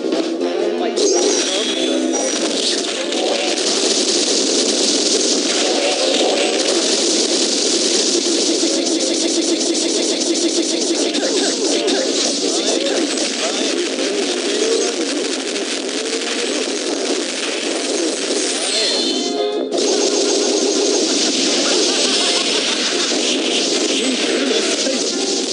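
Rapid punches and blasts from a fighting game hit again and again.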